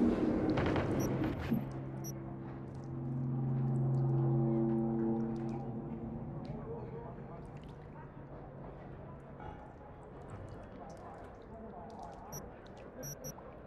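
Soft electronic menu beeps chirp now and then.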